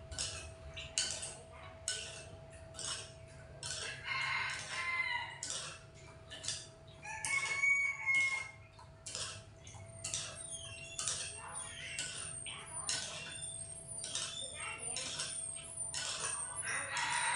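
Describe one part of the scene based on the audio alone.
Utensils clink and tap against dishes.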